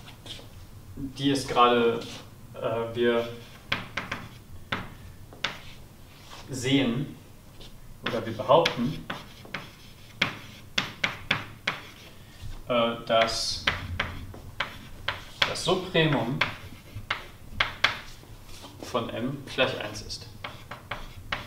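A young man speaks calmly, as if lecturing.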